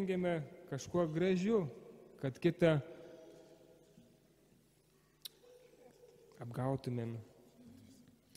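A man chants slowly through a microphone in an echoing hall.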